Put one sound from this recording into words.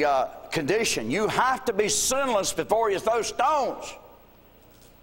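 An elderly man preaches loudly and with animation in a reverberant hall.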